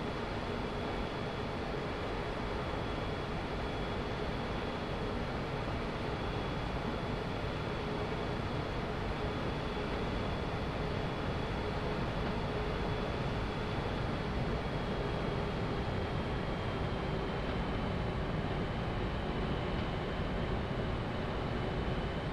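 Jet engines hum and whine steadily as an airliner taxis.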